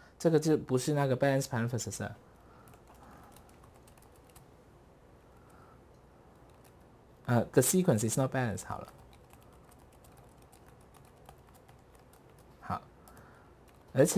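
Keys on a keyboard click softly.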